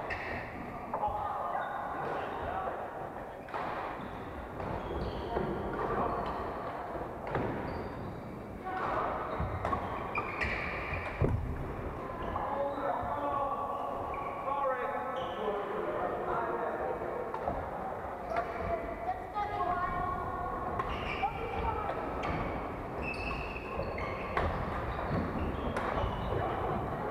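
Shoes squeak on a wooden court.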